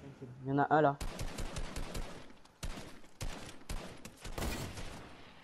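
A rifle fires a burst of rapid shots.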